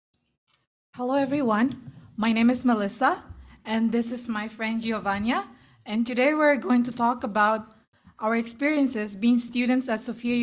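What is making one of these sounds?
A young woman speaks clearly through a microphone.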